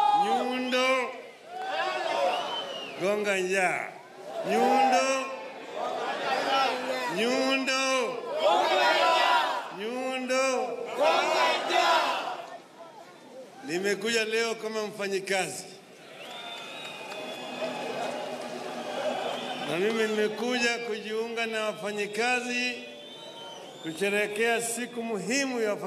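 An elderly man speaks loudly with animation through a microphone and loudspeakers, echoing outdoors.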